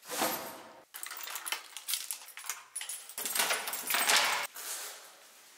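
Keys jingle and rattle.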